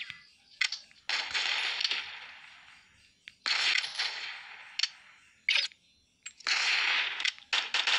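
Gunfire bursts out in rapid volleys.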